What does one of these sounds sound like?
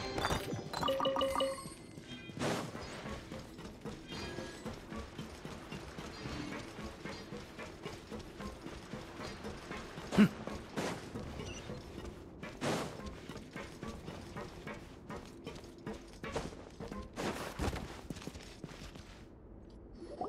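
Footsteps patter quickly on stone and wooden stairs.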